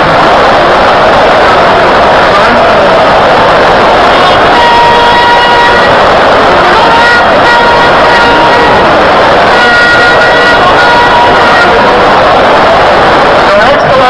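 A huge crowd roars and cheers loudly in a large open stadium.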